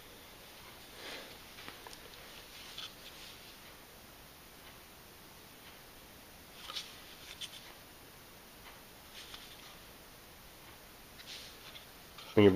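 Metal parts click and rattle softly as they are moved by hand.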